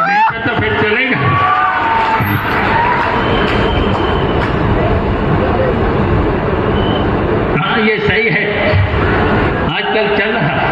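A man speaks with animation through a loudspeaker in a large echoing hall.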